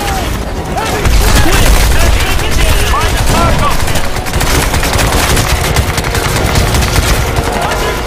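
Rapid gunfire rattles and echoes nearby.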